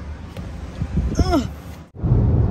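A machine beeps as a card is tapped.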